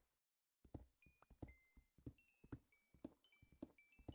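Bright clinking blips ring out.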